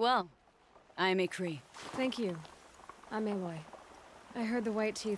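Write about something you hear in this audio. A young woman answers calmly.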